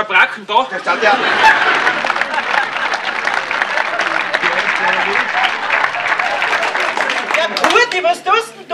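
An audience claps and cheers.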